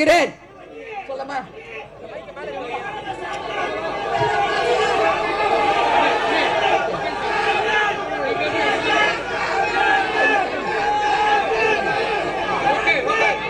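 A crowd of men chatters and shouts all around.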